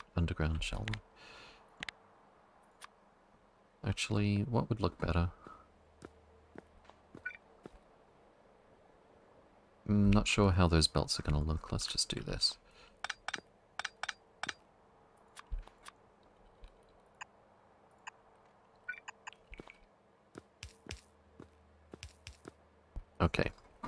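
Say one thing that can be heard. Short clicks sound as parts are placed.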